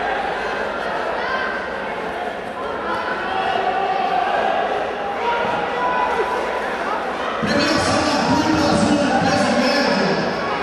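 Bare feet shuffle and thud on a mat.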